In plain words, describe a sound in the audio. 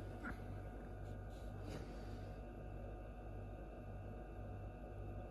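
An incubator fan hums steadily.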